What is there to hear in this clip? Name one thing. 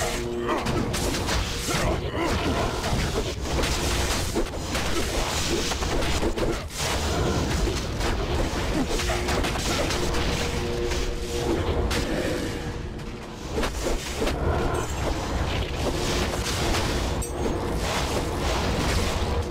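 Game spells crackle and burst rapidly in a fight.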